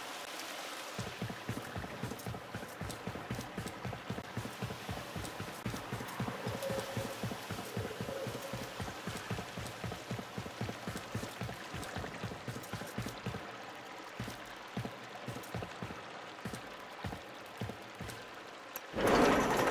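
Rapid gunfire from a game weapon rattles in quick bursts.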